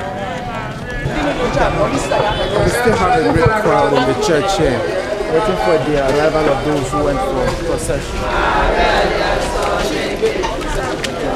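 A large crowd of men and women chatters and murmurs nearby.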